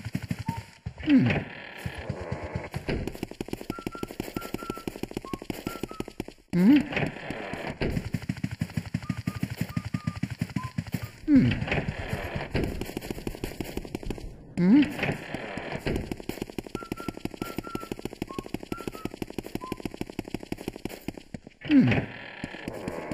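A door swings open with a whoosh.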